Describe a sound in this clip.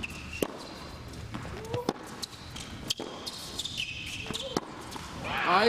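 A tennis ball bounces sharply on a hard court.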